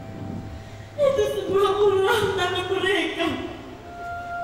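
A young woman sings on a stage, heard through a microphone in a large hall.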